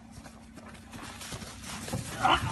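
A large animal runs through grass close by, paws thudding.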